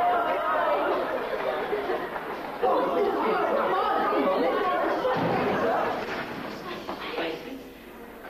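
A crowd of people chatter together.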